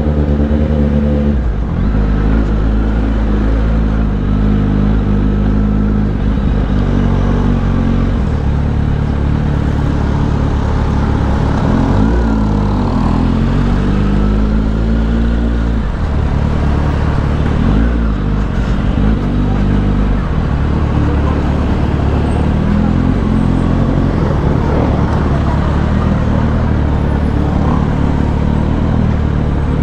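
A motorcycle engine hums close by and revs up and down.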